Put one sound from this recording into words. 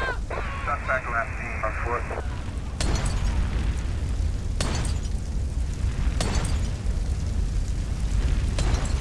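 A large fire roars steadily.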